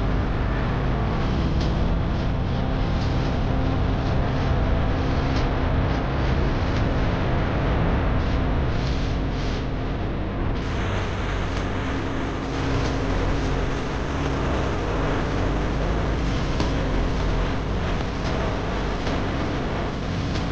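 Wind rushes steadily past the microphone.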